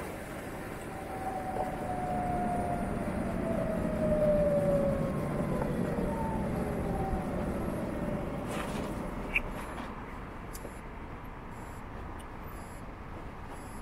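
Wind rumbles past a rider outdoors, easing as the motorcycle slows.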